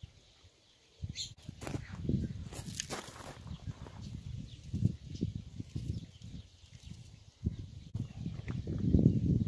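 A man's feet crunch and shuffle on gravel.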